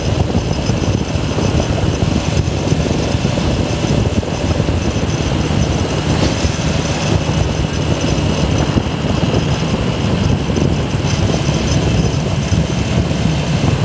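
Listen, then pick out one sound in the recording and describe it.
Wind rushes loudly past a moving rider.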